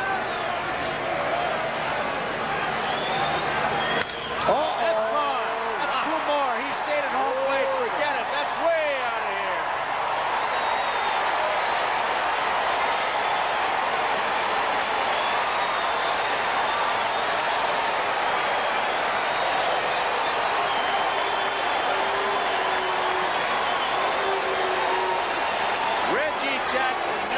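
A large crowd roars and cheers in a big open stadium.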